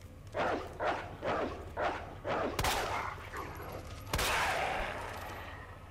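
Gunshots fire in quick succession.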